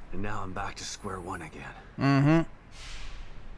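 A man speaks quietly and wearily.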